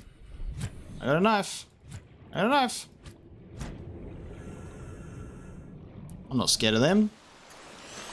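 A man speaks with animation into a close microphone, drawing out his words.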